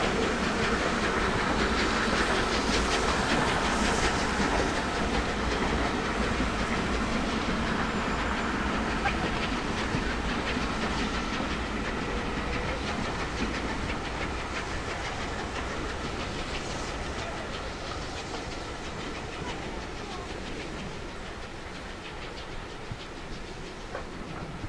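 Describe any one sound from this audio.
A train rumbles across a bridge at a distance and slowly fades.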